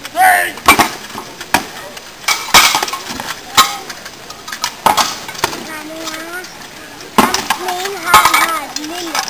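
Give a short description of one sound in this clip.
Metal swords clash with sharp ringing blows.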